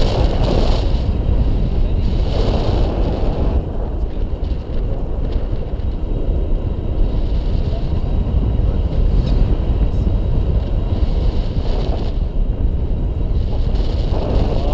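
Strong wind rushes and buffets a microphone throughout.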